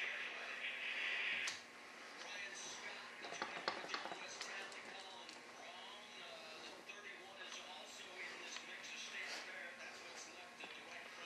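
Stiff fabric rustles and crinkles as it is handled and pulled.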